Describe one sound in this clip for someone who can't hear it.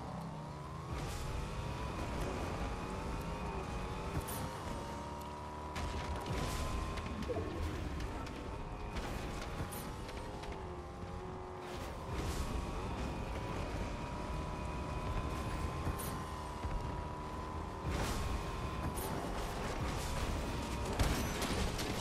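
A car engine hums steadily, rising and falling in pitch as it speeds up and slows down.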